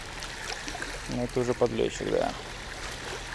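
A fishing reel whirs and clicks as it is wound.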